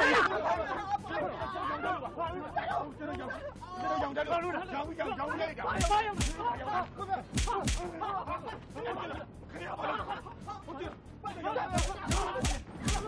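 Several men shout angrily close by.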